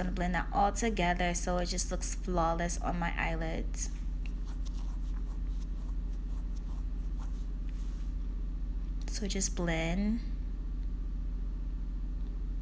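A makeup brush softly sweeps across skin.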